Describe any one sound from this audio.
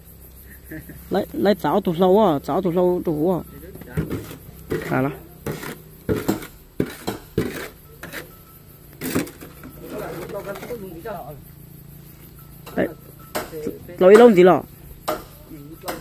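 A man talks nearby in a casual voice.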